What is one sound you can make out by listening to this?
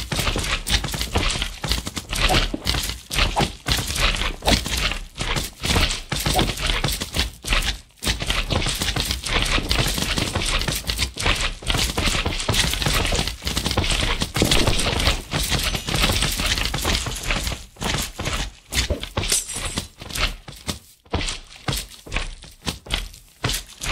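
A sword strikes bouncing slimes with soft squelching thuds.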